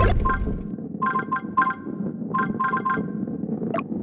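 Bright game pickup chimes ring in quick bursts as gems are collected.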